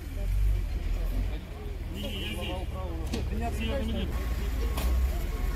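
Men talk with each other outdoors, close by.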